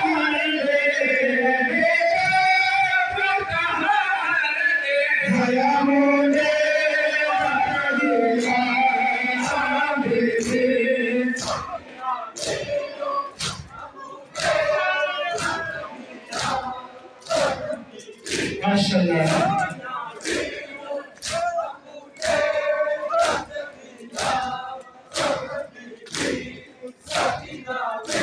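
A large crowd of men chants loudly in unison in an echoing hall.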